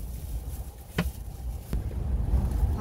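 A wooden board knocks down into place.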